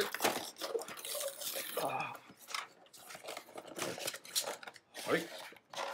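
A plastic blister shell crackles as it is pried apart.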